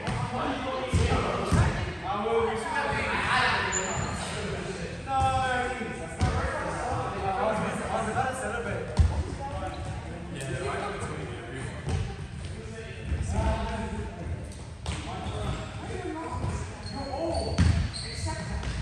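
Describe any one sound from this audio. A volleyball thuds as players strike it.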